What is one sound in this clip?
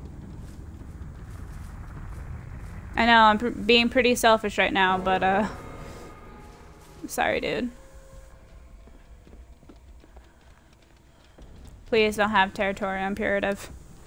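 Footsteps run over grass and ground.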